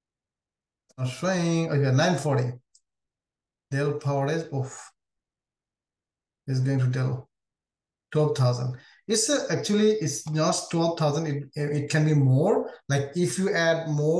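A man speaks calmly into a close microphone, with pauses.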